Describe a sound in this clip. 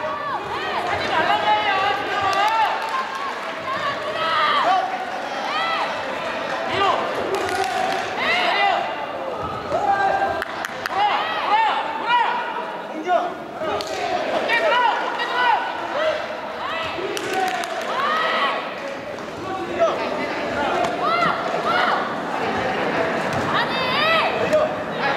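Bare feet squeak and shuffle on a rubber mat.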